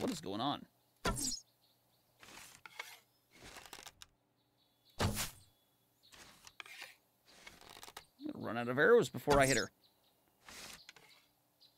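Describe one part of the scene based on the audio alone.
A bow string twangs as an arrow is shot.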